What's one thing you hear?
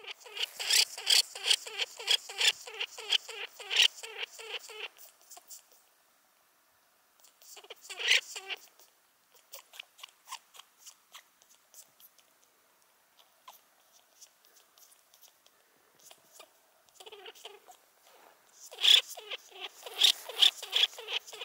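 A small bird chirps rapidly and loudly close by.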